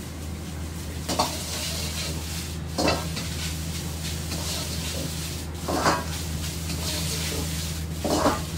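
Rice sizzles in a hot wok.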